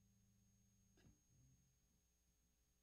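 An acoustic guitar is strummed briefly.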